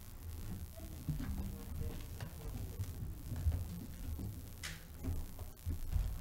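Papers rustle and a folder is handled on a lectern.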